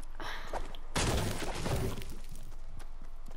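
A pickaxe chops into a tree trunk.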